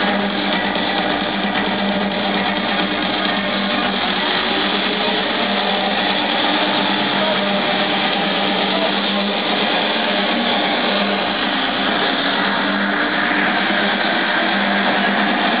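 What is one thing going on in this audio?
Loud electronic dance music booms through large speakers outdoors.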